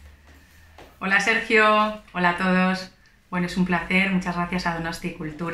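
A young woman sings over an online call.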